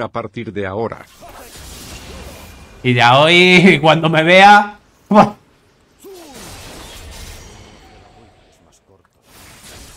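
Game sound effects of spells and hits play.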